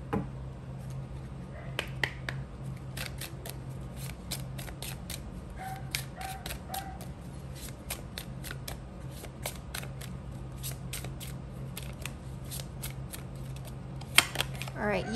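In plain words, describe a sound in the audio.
Cards riffle and snap as a deck is shuffled by hand.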